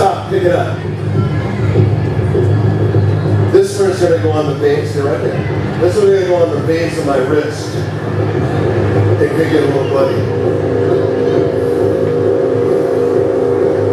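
A man speaks with animation through a head microphone over a loudspeaker.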